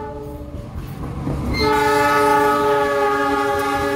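Train wheels clatter over the rails.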